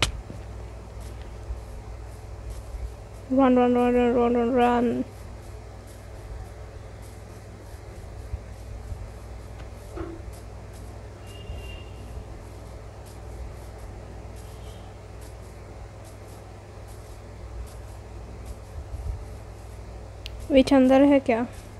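Footsteps patter softly on grass.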